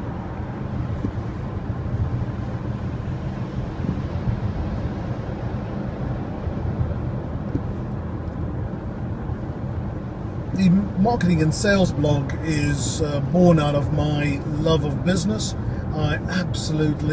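A car engine and road noise rumble steadily from inside a moving car.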